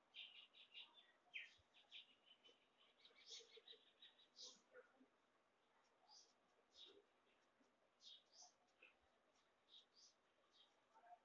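A pencil scratches on paper in short strokes.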